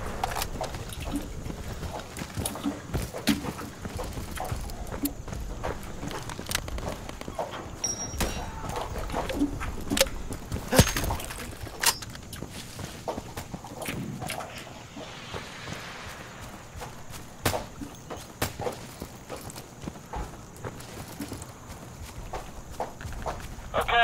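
Gunshots crack repeatedly, near and far.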